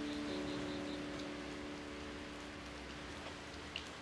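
An electronic keyboard plays a sustained chord that fades.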